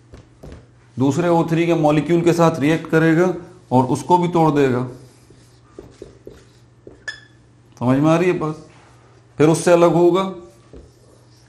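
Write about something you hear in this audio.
A man speaks clearly and calmly, close by, in short bursts.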